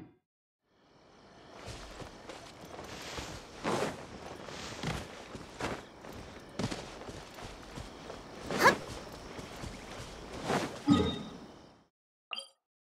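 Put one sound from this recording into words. Footsteps rustle through grass as a game character runs.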